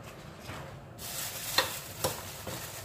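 A gloved hand scrapes and presses a soft mixture in a metal bowl.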